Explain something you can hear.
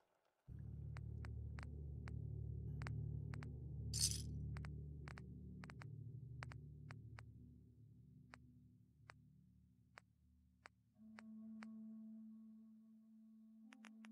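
Soft electronic clicks tick one after another as menu items are scrolled through.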